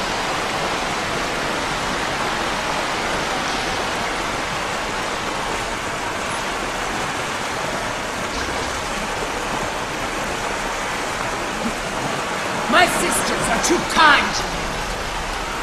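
Water pours down steadily in a loud rush.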